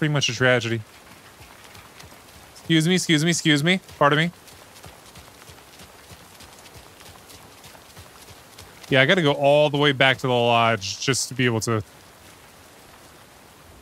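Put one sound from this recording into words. Footsteps tread slowly on wet pavement.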